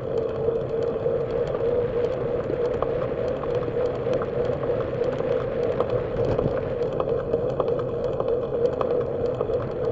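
Bicycle tyres hum steadily on smooth pavement.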